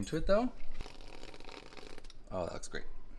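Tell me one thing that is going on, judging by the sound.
A whipped cream canister hisses as cream is sprayed.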